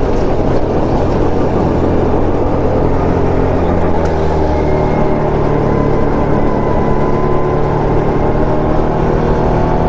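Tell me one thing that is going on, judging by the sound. A go-kart engine buzzes loudly, its pitch shifting as the kart takes corners and speeds up.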